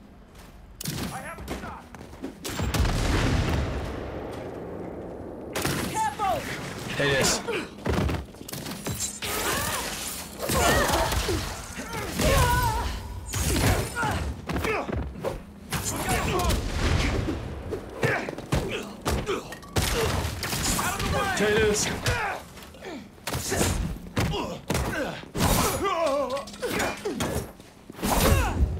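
Punches and blows land with heavy thuds.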